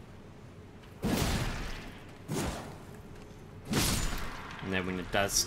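Heavy weapon swings whoosh and crash in short bursts.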